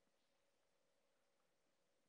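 A woman breathes slowly and softly through her nose, close by.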